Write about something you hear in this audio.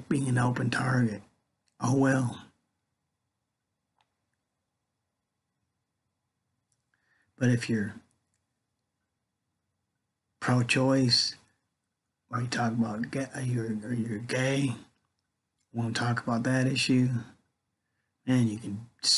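A middle-aged man speaks calmly into a nearby microphone, in short bursts with pauses.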